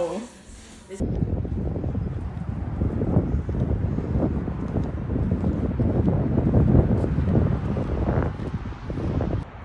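Wind gusts outdoors.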